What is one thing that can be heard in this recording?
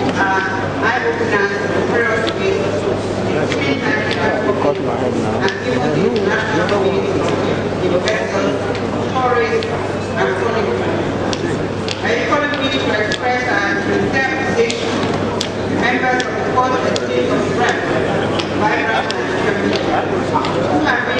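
A woman speaks steadily into a microphone, heard through a loudspeaker in a large room.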